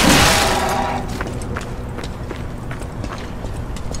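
Footsteps scrape on cobblestones.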